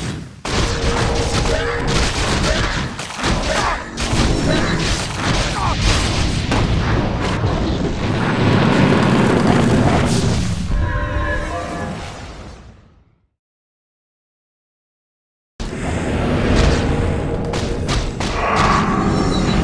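Magic spells burst and crackle in a fight.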